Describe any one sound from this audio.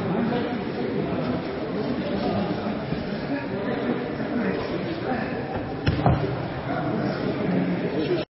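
Heavy fabric rustles and scuffs as two people grapple on a mat.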